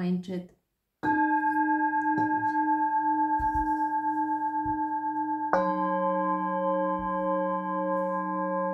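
A metal singing bowl is struck and rings with a long, steady, humming tone.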